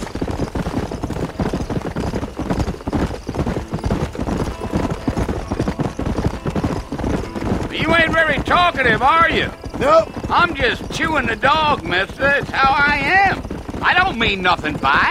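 Horse hooves thud quickly on a dirt path.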